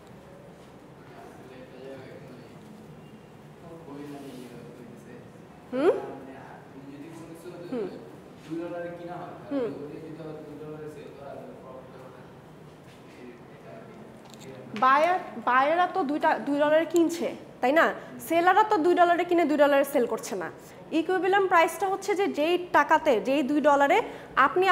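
A young woman speaks calmly through a microphone.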